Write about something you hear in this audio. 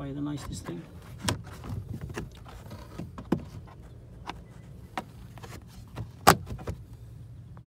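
Fingers knock and rub against a hard plastic panel.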